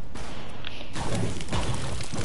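A pickaxe strikes wood.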